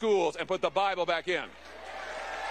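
A man speaks into a microphone to an audience.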